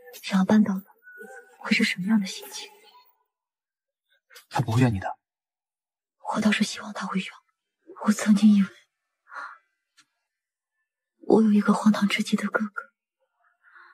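A young woman speaks softly and calmly.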